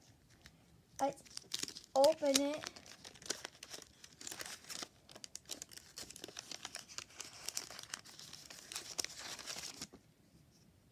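Cardboard and foil wrapping rustle and crinkle as a package is torn open.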